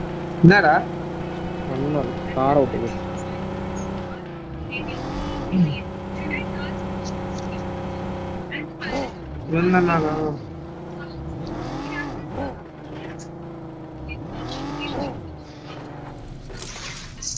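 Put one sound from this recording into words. A car engine drones and revs up and down.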